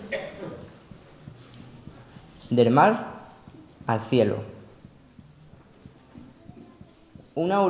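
A young man speaks slowly and solemnly into a microphone, in a room with some echo.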